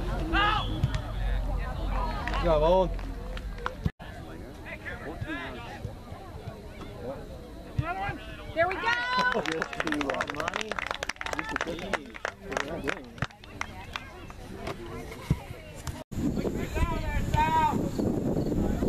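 Young players shout to one another across an open field.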